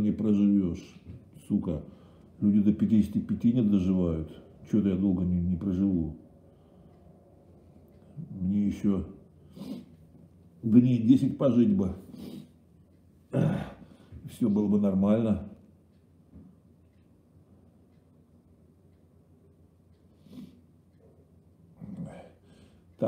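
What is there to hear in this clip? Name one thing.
A middle-aged man speaks close to the microphone in a low, earnest voice, with pauses.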